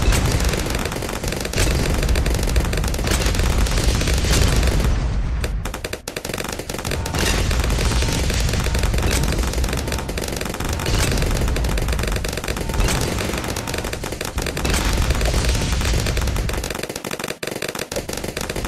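Explosions boom again and again.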